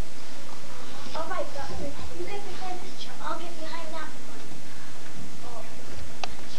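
Children talk and murmur in a room.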